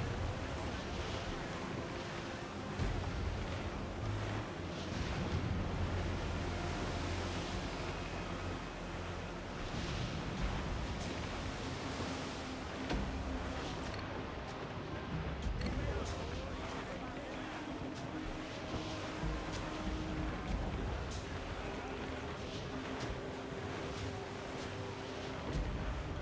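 Waves splash and rush against a ship's hull.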